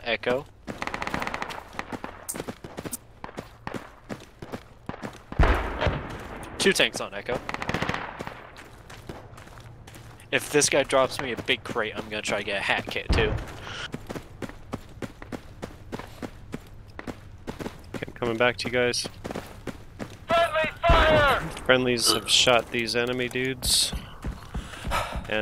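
Footsteps crunch on dry, rocky ground.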